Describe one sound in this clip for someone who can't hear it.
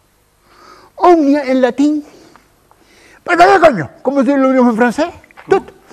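An elderly man talks with animation, close by.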